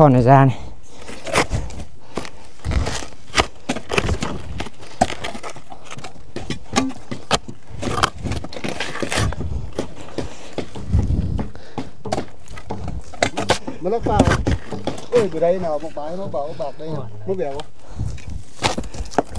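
A hoe strikes and chops into hard soil.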